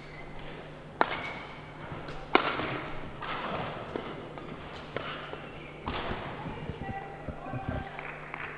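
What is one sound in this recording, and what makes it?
A racket strikes a shuttlecock with sharp pops, back and forth.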